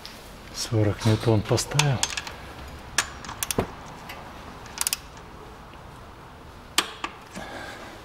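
A ratchet wrench clicks in short bursts.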